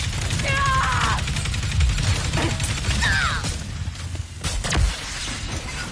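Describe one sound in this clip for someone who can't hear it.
Energy blasts fire and explode with sharp crackling bursts.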